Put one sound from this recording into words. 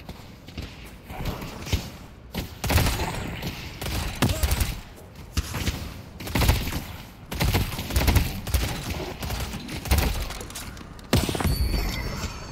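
Guns fire in rapid bursts of shots.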